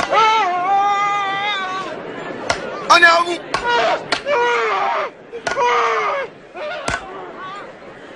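A crowd of men and women wails and cries out in grief.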